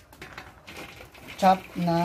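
Soil pours from a plastic bucket into a metal basin with a soft rustle.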